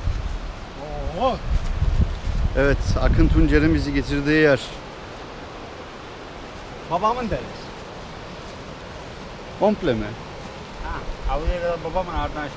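A young man talks with animation, close by.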